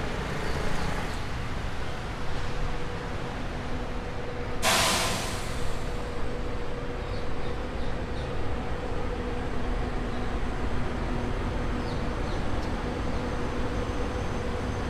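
Bus engines idle with a steady low rumble close by.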